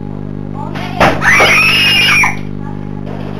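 A young woman lets out a loud, shrill scream.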